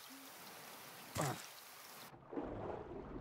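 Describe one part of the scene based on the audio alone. Water splashes as a diver plunges in.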